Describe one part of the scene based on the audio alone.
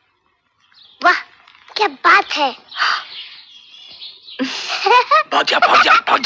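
A young boy speaks cheerfully.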